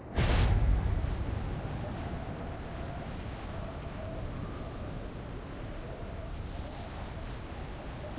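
Wind rushes steadily past a skydiver in free fall.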